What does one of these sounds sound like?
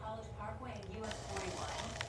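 Gunfire from a video game crackles through a television speaker.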